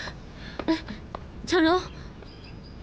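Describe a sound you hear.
A young woman cries out in surprise.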